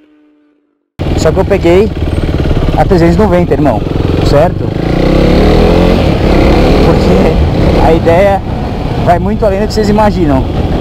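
A motorcycle engine roars and revs while riding through traffic.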